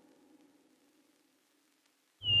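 An electric guitar plays softly.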